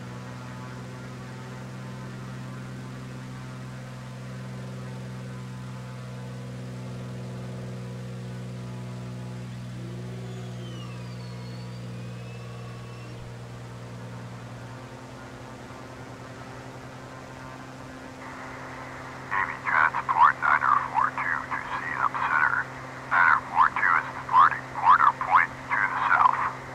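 Twin propeller engines drone steadily.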